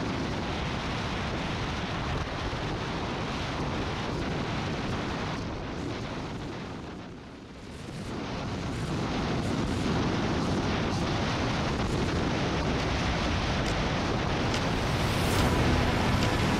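A motorcycle engine hums steadily.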